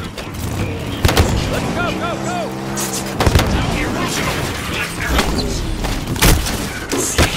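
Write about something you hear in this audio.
Explosions boom in a video game.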